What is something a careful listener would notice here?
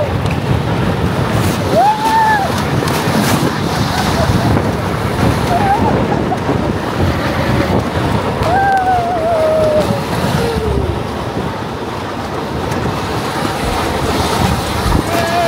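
A sled rumbles and rattles steadily as it slides fast down a plastic track.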